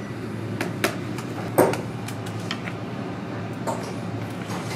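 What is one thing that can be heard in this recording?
A small hammer taps on a metal tool.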